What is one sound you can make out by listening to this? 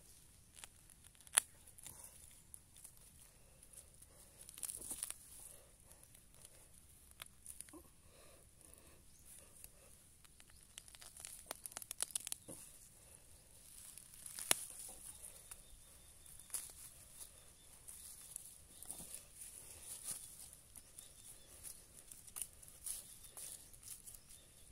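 A small trowel scrapes and digs into soft soil.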